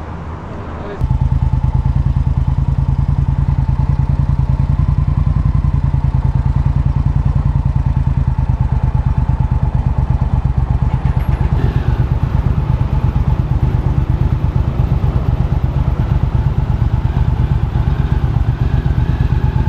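A motorcycle engine rumbles loudly and steadily as the bike pulls away.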